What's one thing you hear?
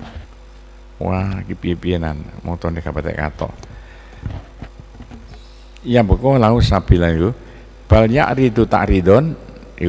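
A middle-aged man speaks and chants through a microphone.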